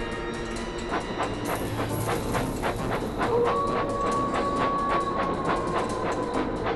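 A cart rattles along rails with quick, steady clacks.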